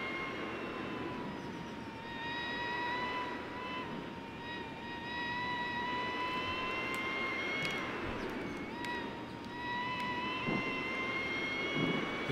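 Wind rushes past a fast-moving motorcycle.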